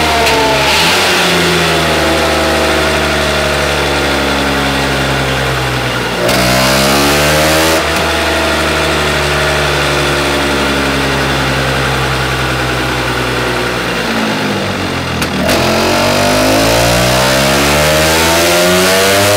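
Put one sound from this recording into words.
A scooter engine roars loudly, revving up and down through the gears.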